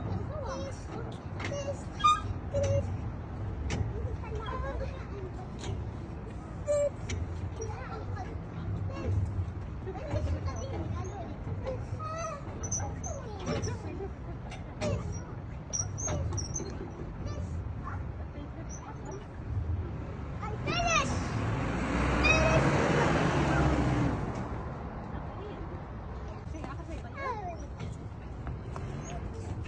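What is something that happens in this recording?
Metal rings clink and creak as a child swings on them.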